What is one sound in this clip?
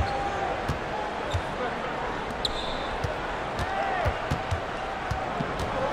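A large crowd murmurs in a big echoing arena.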